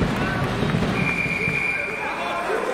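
A referee whistles sharply.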